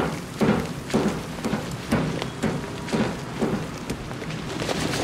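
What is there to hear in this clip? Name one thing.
Footsteps clank on metal.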